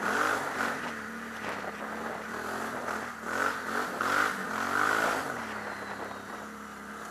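A snowmobile engine hums steadily and revs up and down.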